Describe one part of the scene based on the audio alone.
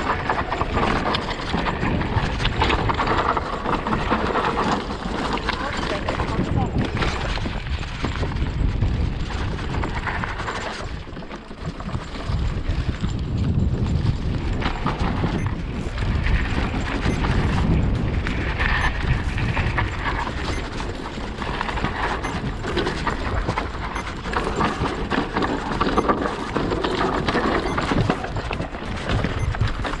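A hardtail electric mountain bike rattles over roots and stones on a dirt trail.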